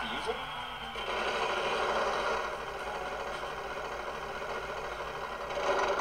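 A prize wheel clicks rapidly as it spins, heard through a television speaker.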